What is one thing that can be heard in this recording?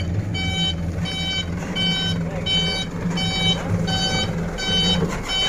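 A truck's diesel engine rumbles steadily.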